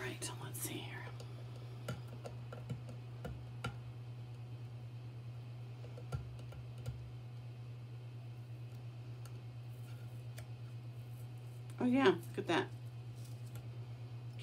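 Tape peels off a surface with a soft crackling rip.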